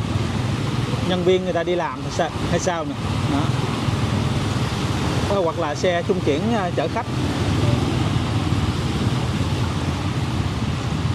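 Tyres splash steadily through deep floodwater.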